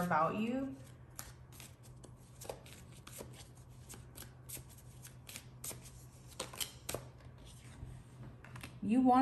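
Playing cards shuffle with quick, soft clicks.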